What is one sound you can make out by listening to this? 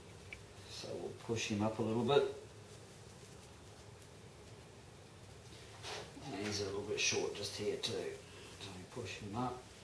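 A paper mask peels and rustles off a mould.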